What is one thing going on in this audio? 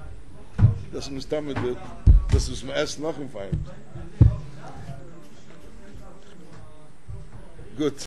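An elderly man speaks with animation into a nearby microphone.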